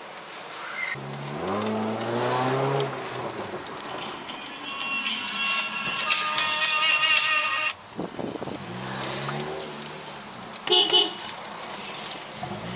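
A car engine hums while driving.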